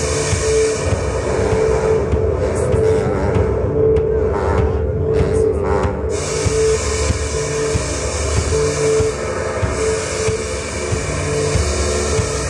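A band plays loud live music through a sound system outdoors.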